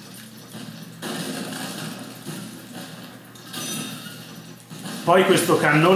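A fiery explosion bursts with a whoosh in a video game.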